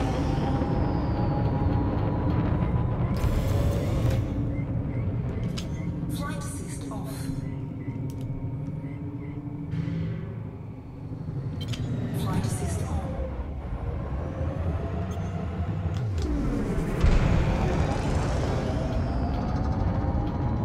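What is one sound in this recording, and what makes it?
A spaceship's engines hum and roar steadily, rising and falling in pitch as it manoeuvres.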